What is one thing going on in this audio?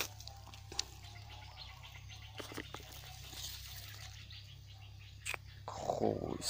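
Dry leaves rustle and crackle close by.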